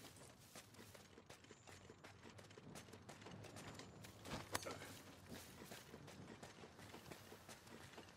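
Heavy footsteps crunch on rocky ground.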